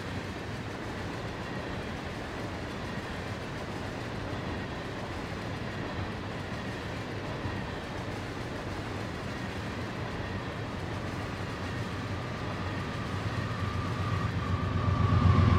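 Freight wagons rumble and clatter along the rails close by.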